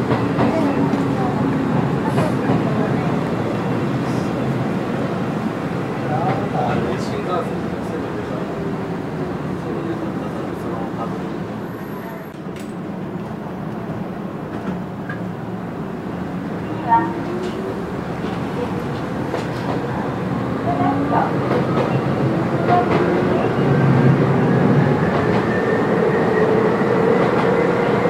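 A train's motors whine as it slows into a station, stops and pulls away again.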